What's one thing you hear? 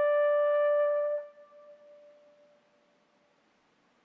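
A bugle plays a long held note that ends and echoes away in a large hall.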